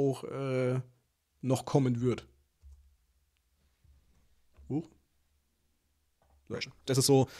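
A young man speaks calmly and close to a microphone, in short bursts with pauses.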